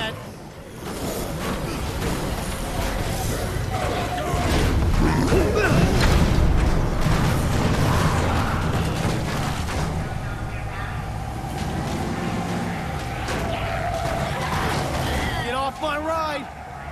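Zombies groan and moan in a crowd.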